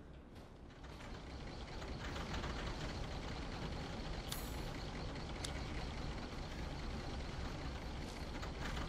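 A large engine rumbles steadily.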